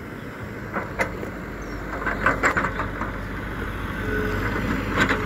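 Metal parts of an excavator clank and knock.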